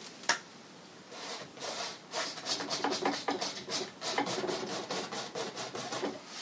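A paintbrush brushes and scrapes softly across canvas.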